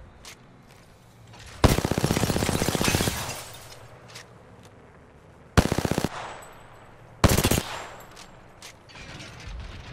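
A gun clicks and clacks as a magazine is reloaded.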